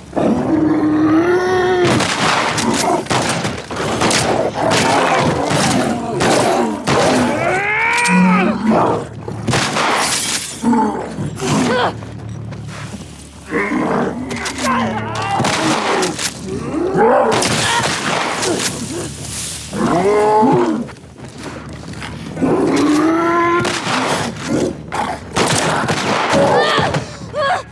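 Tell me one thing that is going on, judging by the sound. A monster shrieks and gurgles with rising and falling cries.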